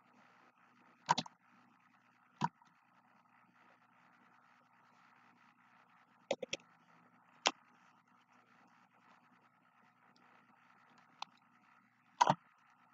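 A plastic bottle crinkles and clicks in a hand, close by.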